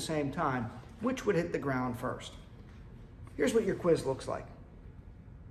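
A middle-aged man speaks calmly and clearly to a close microphone.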